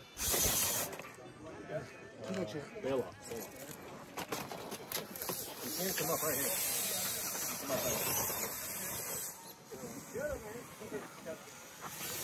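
Rubber tyres scrape and grind on rock.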